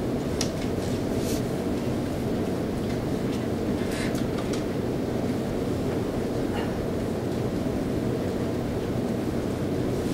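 A pen scratches softly on paper close to a microphone.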